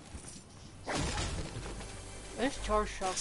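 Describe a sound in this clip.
A treasure chest hums and jingles as it is opened.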